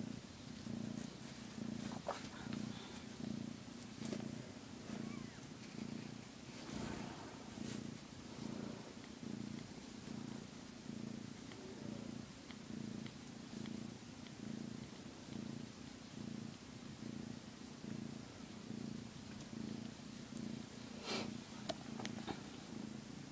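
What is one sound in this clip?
A hand rubs through a cat's fur with soft rustling.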